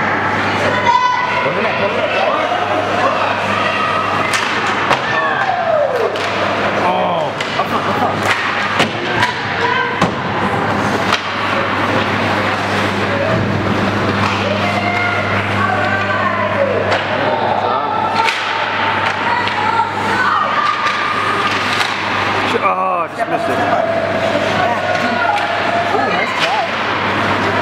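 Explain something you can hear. Hockey skates scrape and carve on ice.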